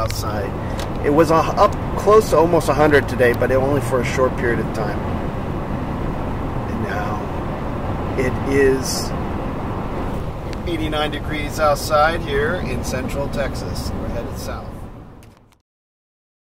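A car's engine and tyres rumble steadily on a road.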